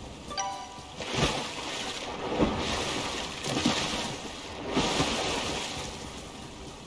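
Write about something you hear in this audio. Water splashes loudly as a figure swims and jumps out of it.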